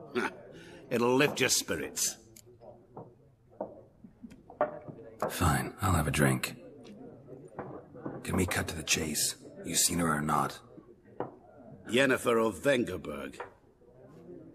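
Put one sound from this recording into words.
A man answers in a friendly voice.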